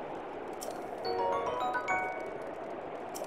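A short, bright chime of rising notes plays.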